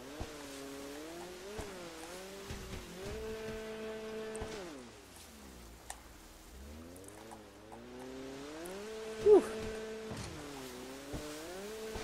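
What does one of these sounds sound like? Water splashes and sprays behind a jet ski.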